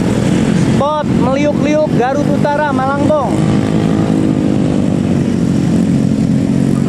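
Motorcycle engines drone steadily as the bikes ride past.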